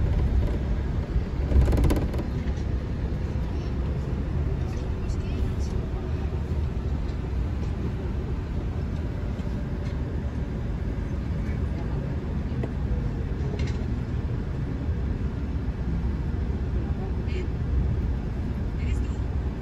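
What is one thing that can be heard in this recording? A car engine rumbles steadily from inside a moving vehicle.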